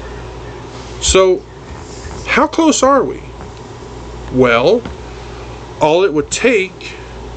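A middle-aged man speaks calmly in short phrases, close to a microphone.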